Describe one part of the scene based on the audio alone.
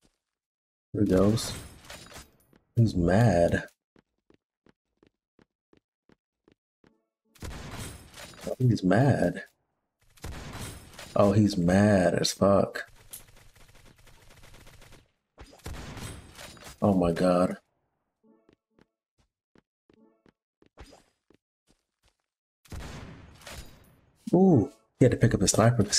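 A young man talks with animation into a close microphone, in bursts.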